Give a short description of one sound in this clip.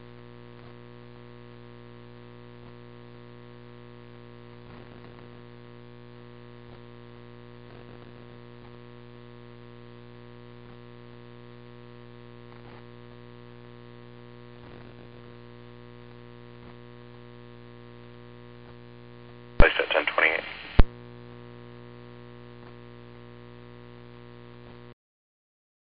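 Water sprays from a fire hose.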